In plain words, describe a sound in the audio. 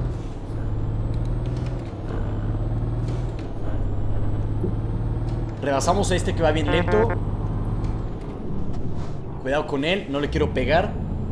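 A bus engine hums steadily as it drives along.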